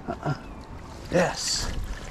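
A fish splashes and thrashes in shallow water.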